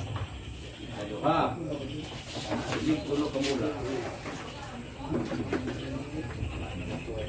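Men talk casually nearby in a room.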